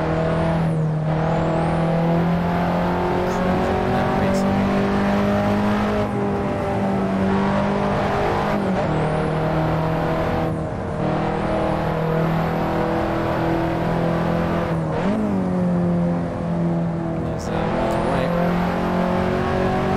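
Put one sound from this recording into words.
A car engine hums steadily, its pitch rising and falling with gear changes.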